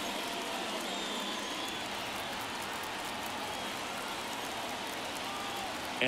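A large crowd murmurs and chatters steadily in a big open stadium.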